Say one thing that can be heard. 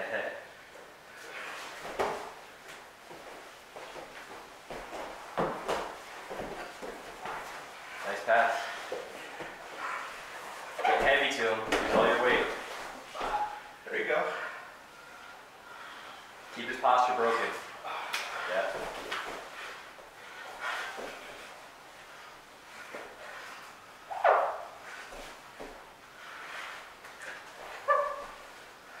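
Bodies thump and scuffle on a padded mat.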